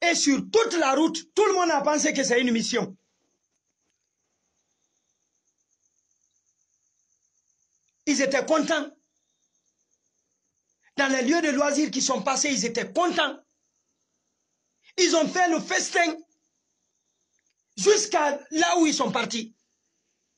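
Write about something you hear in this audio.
A young man speaks with animation close to a microphone, in short bursts with pauses.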